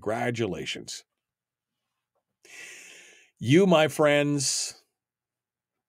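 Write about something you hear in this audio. An older man speaks with animation close to a microphone.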